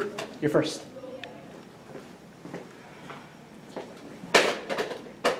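Footsteps tap on a hard floor in an echoing hallway.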